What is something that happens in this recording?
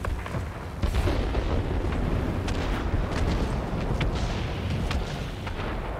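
Gunfire and explosions crack in quick bursts.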